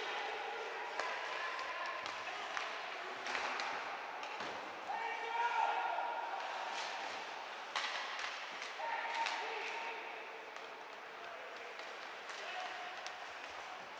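Hockey sticks clack sharply against the puck and the ice.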